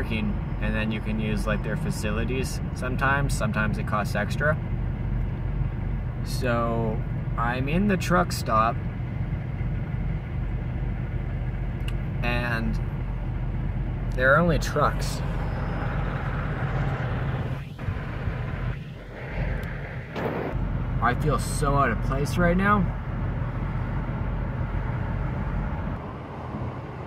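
A vehicle engine hums steadily from inside the cab.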